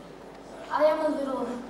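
A woman speaks on a stage.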